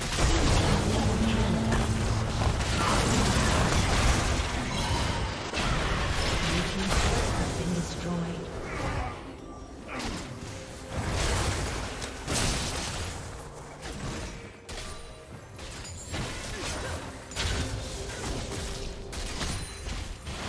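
Game spells crackle and burst in a fast, busy fight.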